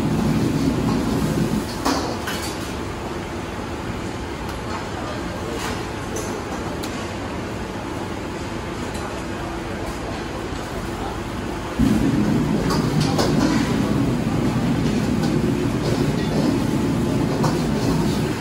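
A metal spatula clatters against a wok.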